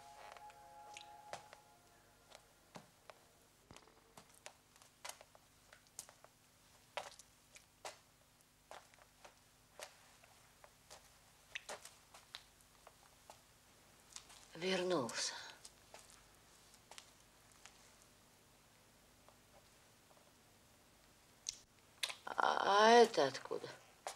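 Footsteps tread on a wet floor.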